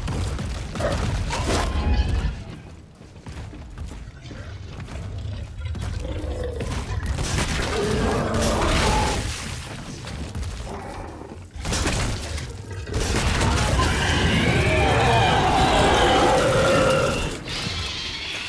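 A monster shrieks and growls close by.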